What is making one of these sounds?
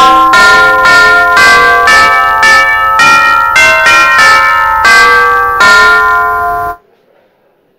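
A piano plays a slow, ringing melody.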